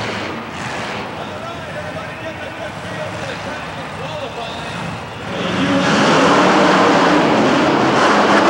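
A large truck engine rumbles and revs loudly.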